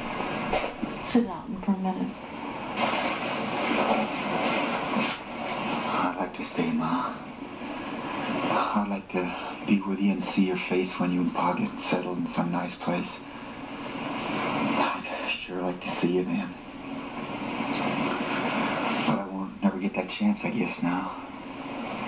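A man speaks tensely, heard through a loudspeaker.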